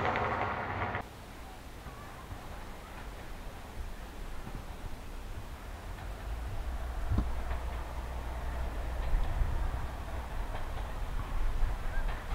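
A diesel train rumbles quietly in the distance as it approaches, growing louder.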